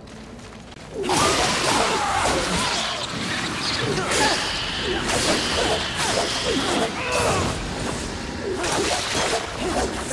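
Blades whoosh and clash with hard hits in a fierce fight.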